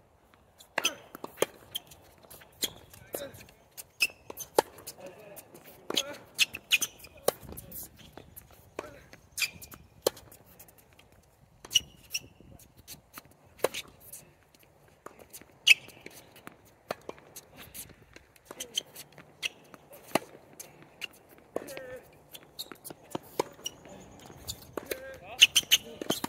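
Tennis shoes squeak and scuff on a hard court.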